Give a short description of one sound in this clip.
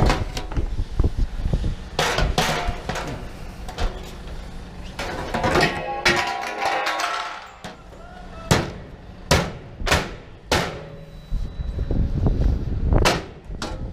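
A metal panel rattles and clanks as it is handled.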